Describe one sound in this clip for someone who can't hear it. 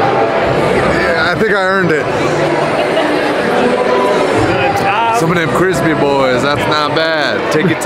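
A middle-aged man talks cheerfully and close by.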